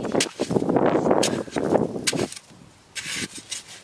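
A hoe chops into soil.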